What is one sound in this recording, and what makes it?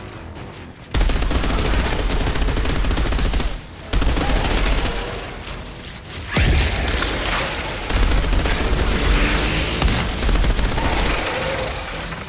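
A rifle fires in rapid, loud, booming bursts.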